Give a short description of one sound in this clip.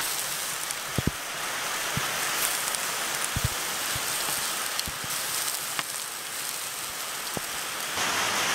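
Metal tongs clink against a steel griddle.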